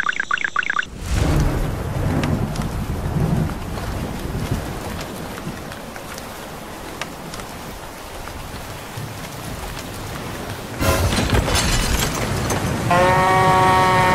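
Rain falls steadily and patters on the ground.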